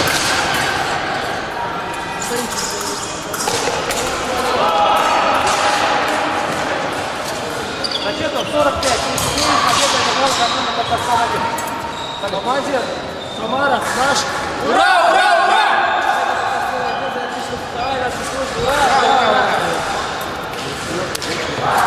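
A man speaks loudly, announcing in a large echoing hall.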